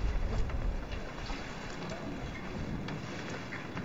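Water pours from a watering can onto leaves.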